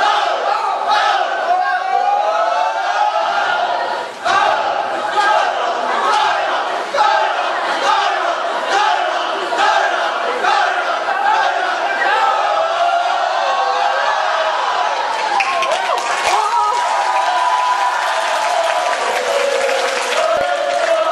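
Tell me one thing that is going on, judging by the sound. A large crowd cheers and screams.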